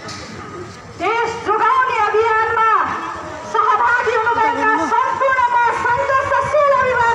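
A young woman speaks loudly and forcefully through a microphone and loudspeaker.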